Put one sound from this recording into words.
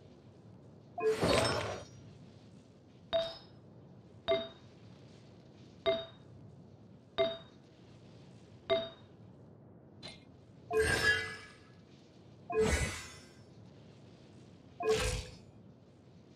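Short game menu chimes and swishes sound at intervals.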